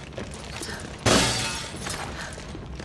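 Glass shatters loudly.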